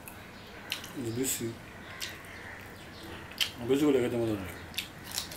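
A man hums briefly with pleasure while eating.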